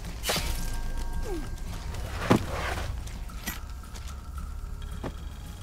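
Leaves and ferns rustle as someone moves through dense undergrowth.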